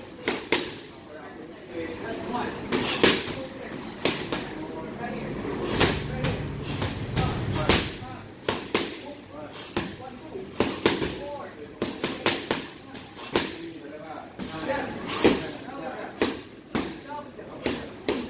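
Gloved punches and kicks smack sharply against pads in quick bursts, echoing in a large room.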